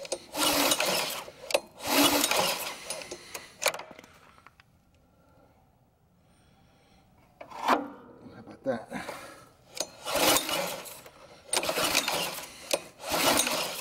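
A starter cord is yanked again and again, each pull briefly whirring a small petrol engine that doesn't start.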